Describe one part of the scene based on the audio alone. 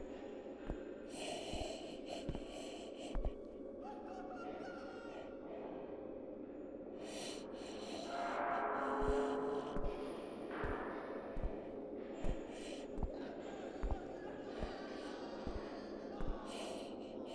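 Slow footsteps thud on a hard floor.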